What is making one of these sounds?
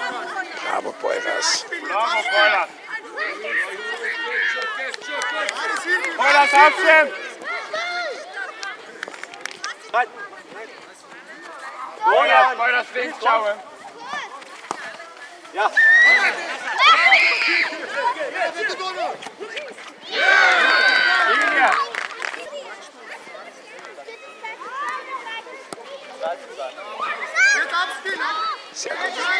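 Adults and children shout and cheer outdoors.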